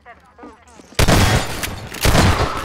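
Glass shatters and cracks.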